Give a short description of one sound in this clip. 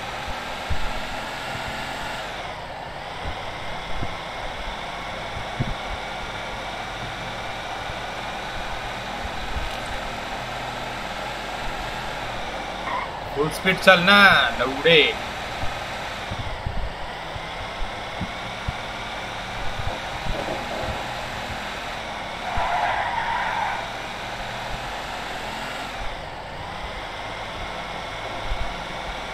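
A truck engine drones steadily as it drives along a road.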